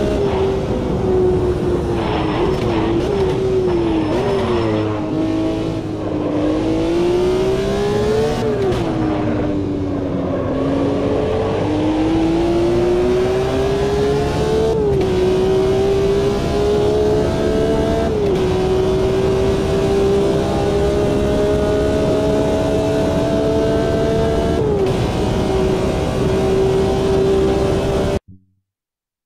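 A racing car engine roars, revving up through the gears and dropping as it slows for corners.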